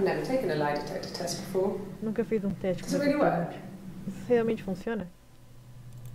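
A young woman speaks calmly through a speaker.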